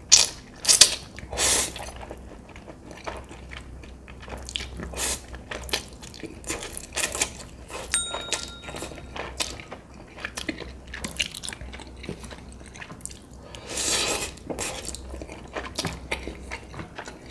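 A man slurps noodles loudly, close to a microphone.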